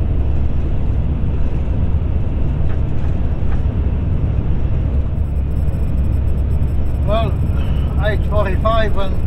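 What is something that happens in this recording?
Tyres hum steadily on a paved road.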